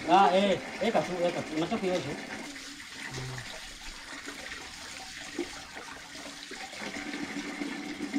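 Water pours from a tap into a plastic container.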